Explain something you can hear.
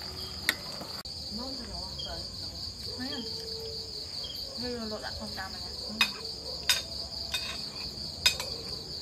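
Spoons clink against bowls.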